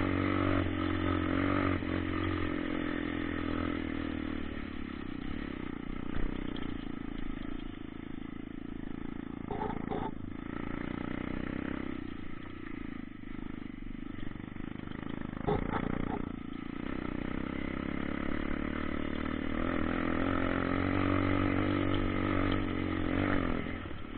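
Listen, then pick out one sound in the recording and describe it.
A motorcycle engine revs and putters steadily, rising and falling in pitch.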